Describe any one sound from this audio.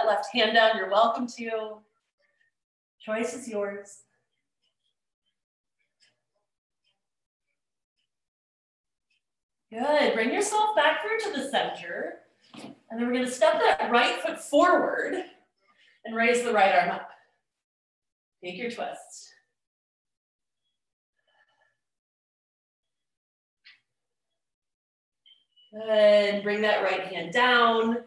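A middle-aged woman speaks calmly through a microphone in an online call, pausing often.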